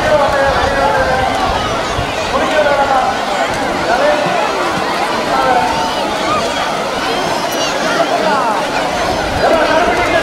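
Water splashes as people wade and throw it.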